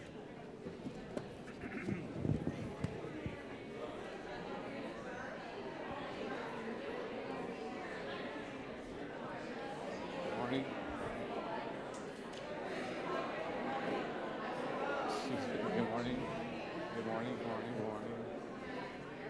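An organ plays softly.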